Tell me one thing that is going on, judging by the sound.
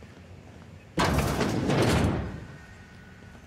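A heavy metal door slides open with a loud hiss.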